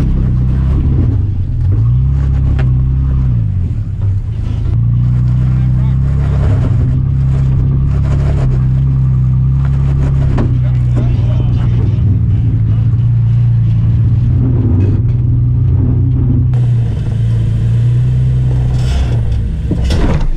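Tyres crunch and grind over rocks.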